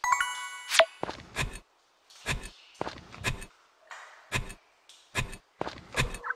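A hoe thuds into soil in a game.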